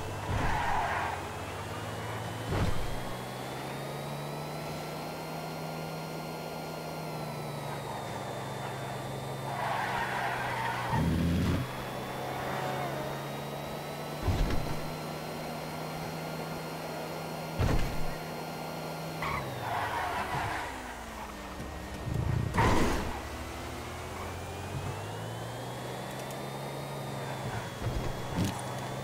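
A sports car engine hums steadily and rises and falls in pitch as it speeds along.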